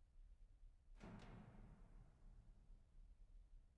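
An organ sounds a short, soft chord that rings out and fades.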